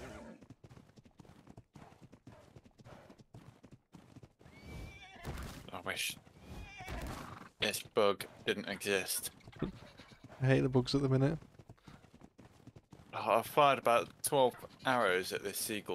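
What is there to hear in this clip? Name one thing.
A horse's hooves thud on the ground as it runs.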